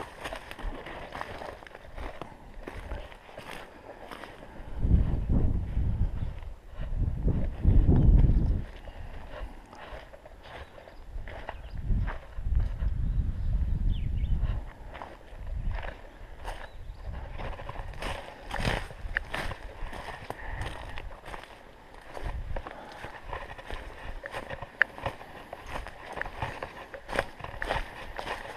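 Footsteps crunch on dry leaves and dirt.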